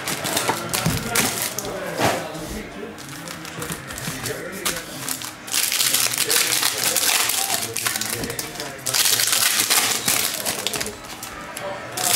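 Foil card packs rustle and crinkle in hands.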